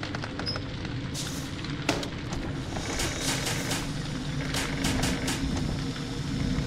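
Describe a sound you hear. A fire roars with a low, steady rumble.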